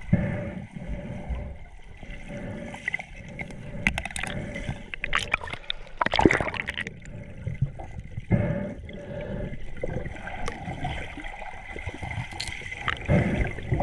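A glass bottle knocks and scrapes against rock underwater.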